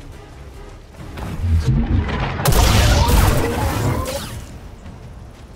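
Fiery explosions burst and roar.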